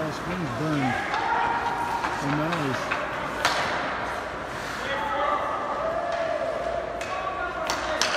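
Skate blades squeal as players stop sharply.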